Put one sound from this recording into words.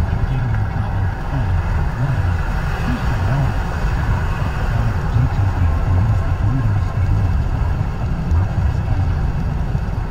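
Tyres roar on the road beneath a moving car.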